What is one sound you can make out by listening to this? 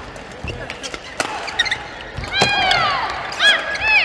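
Sports shoes squeak sharply on a hard court floor.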